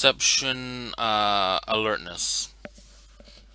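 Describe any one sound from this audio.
A man exclaims loudly with a drawn-out, sing-song voice over an online call.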